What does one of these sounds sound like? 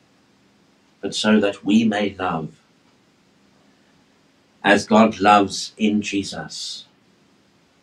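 A middle-aged man speaks calmly into a nearby microphone, in short phrases with pauses.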